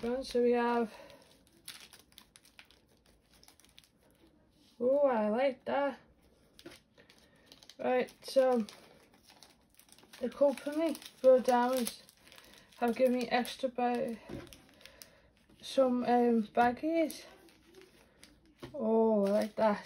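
Plastic bags crinkle and rustle as they are handled.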